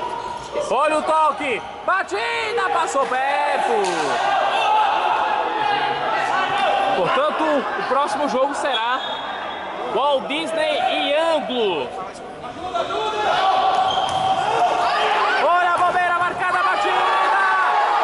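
Sneakers squeak sharply on a hard court, again and again.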